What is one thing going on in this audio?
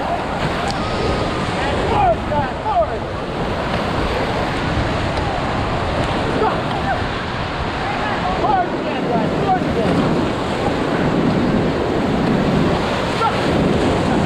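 Waves splash hard against the side of a raft.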